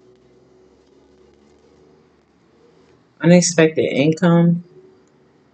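Playing cards rustle softly as they are handled.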